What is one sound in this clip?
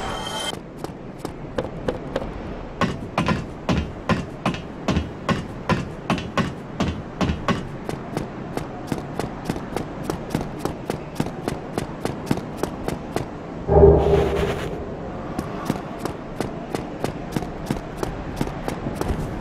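Footsteps tap quickly and evenly on stone.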